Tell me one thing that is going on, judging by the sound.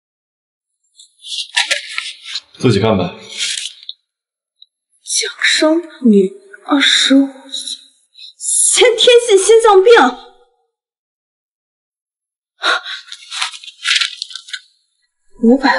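A young woman speaks close by in surprise.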